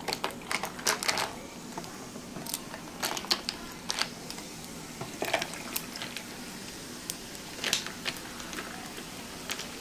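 Fizzy water pours into glasses and fizzes softly.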